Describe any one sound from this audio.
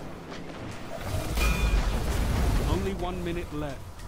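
A powerful energy blast roars and rumbles.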